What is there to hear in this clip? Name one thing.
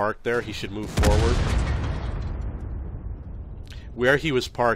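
A loud explosion booms and slowly fades.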